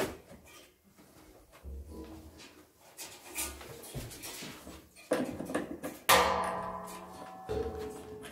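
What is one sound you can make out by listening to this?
Metal fittings clink and click.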